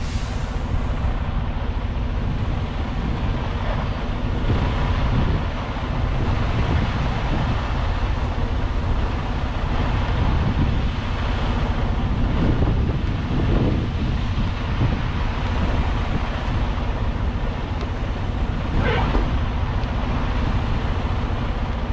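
A large diesel engine idles with a steady low rumble.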